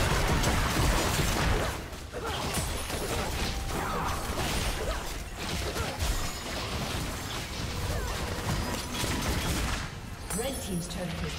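Game spell effects crackle and burst in a fast fight.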